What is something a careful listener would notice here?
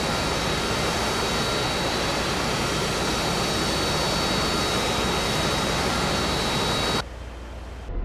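A jet engine roars loudly and steadily.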